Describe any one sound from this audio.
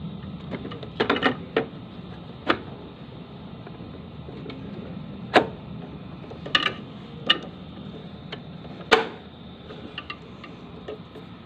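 Plastic parts click and knock as a hose is fitted to a pump.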